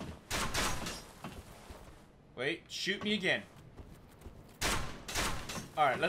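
Metal armour clanks as a knight climbs a ladder.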